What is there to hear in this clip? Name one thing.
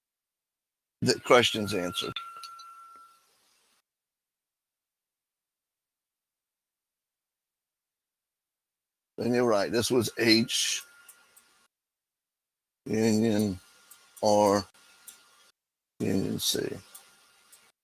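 An older man speaks calmly in short bursts through a headset microphone.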